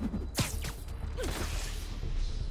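A web shoots out with a sharp whoosh.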